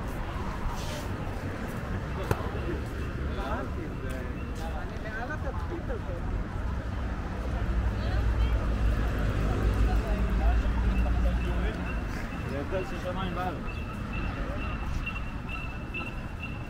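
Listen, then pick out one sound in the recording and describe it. Several young men and women chat nearby in a crowd.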